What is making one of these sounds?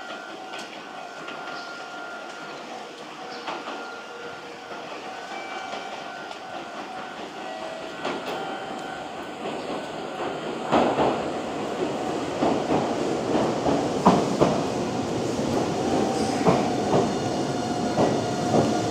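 A train rumbles into the station, growing louder as it approaches.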